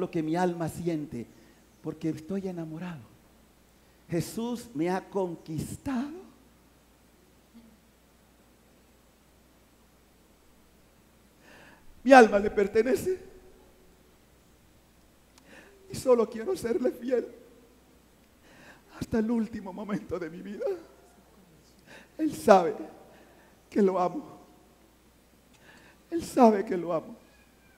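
A middle-aged man speaks emotionally into a close microphone, in bursts with long pauses.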